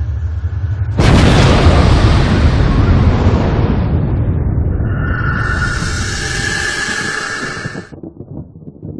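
A huge blast roars out over the water and slowly dies away.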